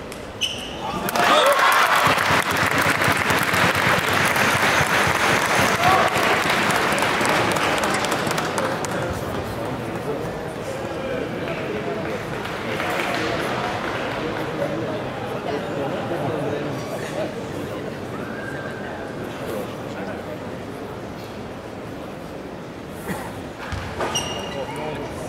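A table tennis ball clicks sharply against a paddle and table.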